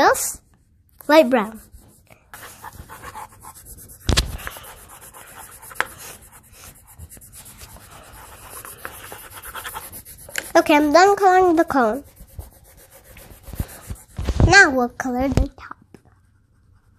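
Colored pencils scratch softly on paper.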